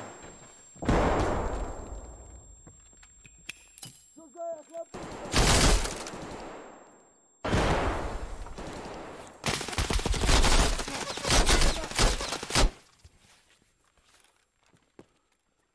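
A young man speaks into a headset microphone.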